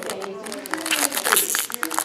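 A foil pack crinkles and rustles between fingers.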